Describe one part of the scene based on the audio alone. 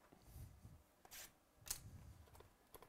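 A knife slits plastic wrap on a box.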